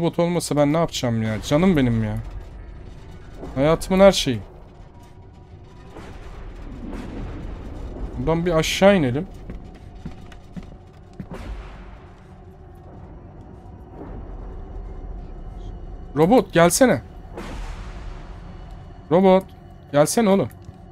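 A young man talks with animation into a close microphone, in short bursts.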